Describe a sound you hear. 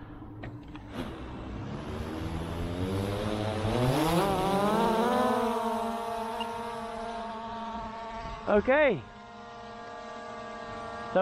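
A drone's motors whir up to speed, then hum steadily overhead.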